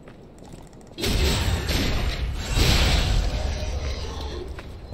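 Blades clash and slash in a close fight.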